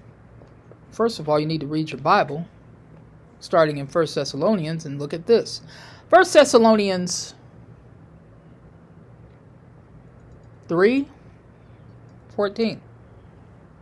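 A woman speaks calmly and close to a microphone, in short bursts with pauses.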